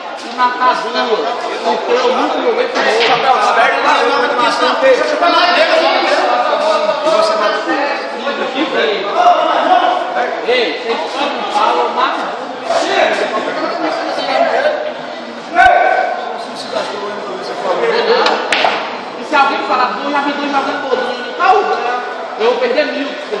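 Several young men talk and laugh loudly nearby.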